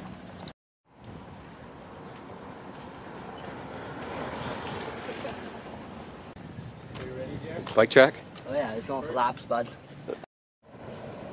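Bicycle tyres roll over concrete.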